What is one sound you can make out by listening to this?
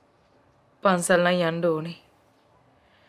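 A middle-aged woman replies briefly and calmly.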